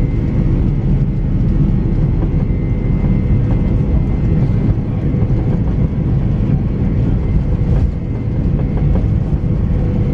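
The engines of a four-engine jet airliner roar inside the cabin as it rolls along a runway.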